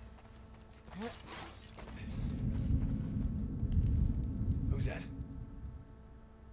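Someone climbs in through a window with a heavy thump.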